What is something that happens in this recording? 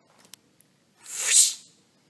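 A playing card scrapes across a hard floor.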